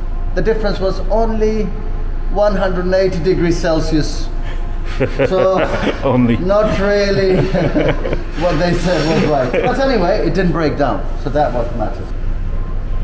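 A young man talks calmly through a close microphone.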